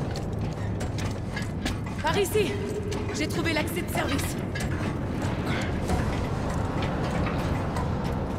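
Metal rungs clank as someone climbs a ladder.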